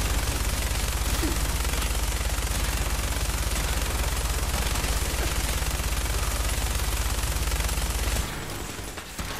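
Rapid automatic gunfire rattles without pause.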